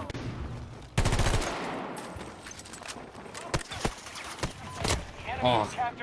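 Gunshots fire in sharp bursts indoors.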